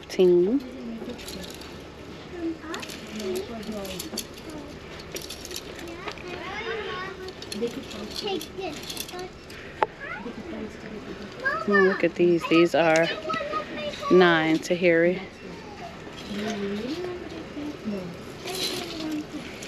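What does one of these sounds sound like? Plastic hangers clack softly against a metal rack.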